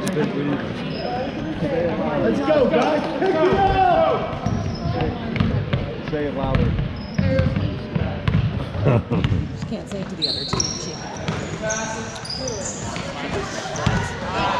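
A crowd of spectators talks and cheers loudly nearby.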